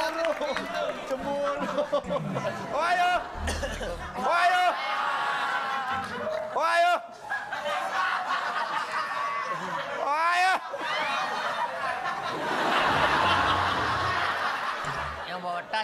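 A studio audience laughs and cheers.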